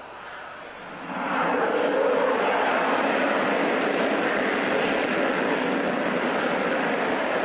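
A twin-engine jet fighter roars on full afterburner as it starts its takeoff roll.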